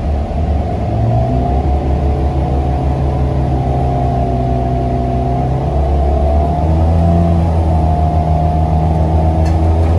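A bus engine whines, rising in pitch as the bus speeds up.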